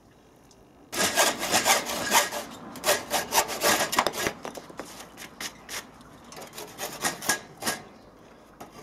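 A hand saw cuts through wood with quick rasping strokes.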